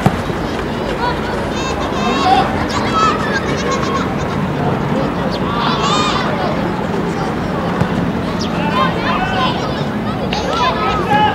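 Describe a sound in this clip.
Children shout and call out high-pitched across an open field outdoors.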